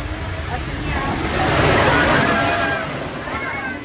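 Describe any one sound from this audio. Another train rushes past close by with a loud whoosh.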